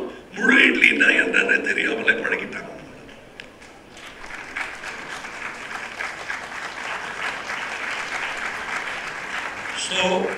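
A middle-aged man speaks with animation into a microphone, heard through loudspeakers.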